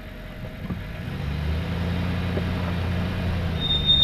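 A vehicle engine revs up and drones steadily.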